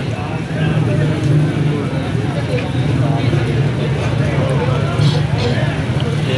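Pigeons coo nearby.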